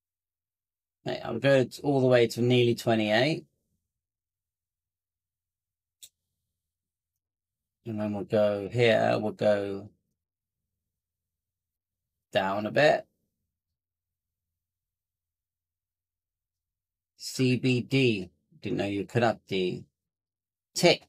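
A man talks calmly into a close microphone, in short bursts with pauses.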